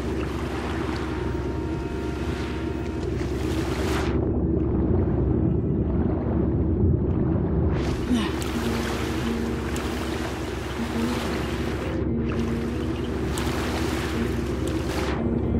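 Water splashes and laps as a swimmer strokes through it.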